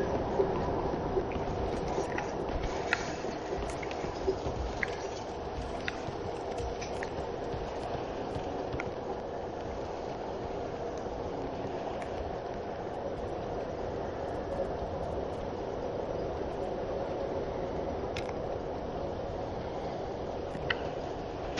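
Armored footsteps clank on stone and wooden floors.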